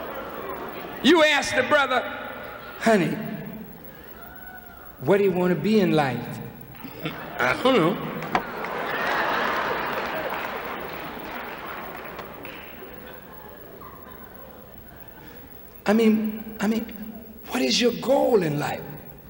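A man speaks forcefully through a microphone in a large echoing hall.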